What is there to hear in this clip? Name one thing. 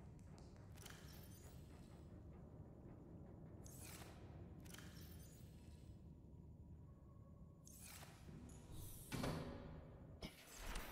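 A metal locker door clicks open and shut several times.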